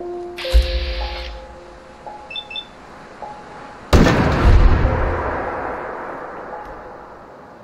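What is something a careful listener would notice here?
A gun fires with loud booms that rumble away.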